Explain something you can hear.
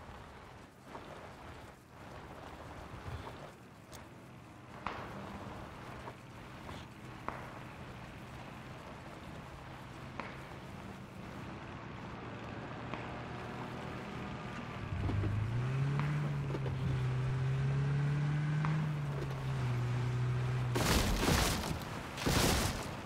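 A car engine hums steadily and revs up as the car drives over rough ground.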